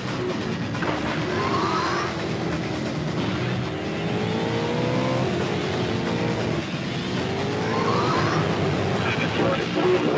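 A video game boat engine whines and rises in pitch.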